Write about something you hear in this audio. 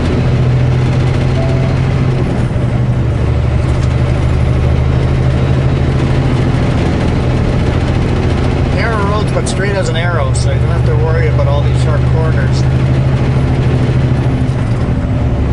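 Oncoming vehicles whoosh past.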